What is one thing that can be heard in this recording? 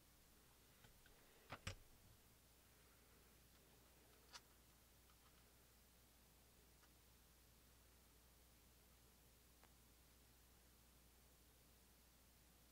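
Paper crinkles softly as hands fold and press it.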